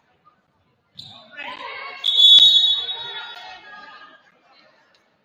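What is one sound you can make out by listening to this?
A crowd cheers and shouts from the stands.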